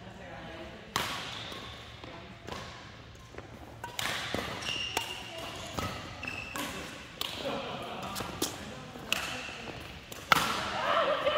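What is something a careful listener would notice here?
Shuttlecocks are struck sharply by rackets in a large echoing hall.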